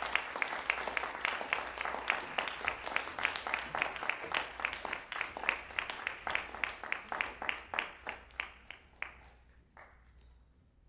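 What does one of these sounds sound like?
An audience applauds in an echoing hall, and the applause fades away.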